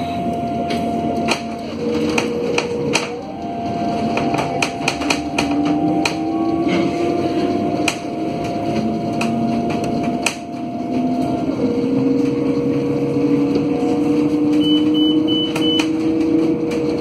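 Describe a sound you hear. A bus engine hums and whines steadily while driving.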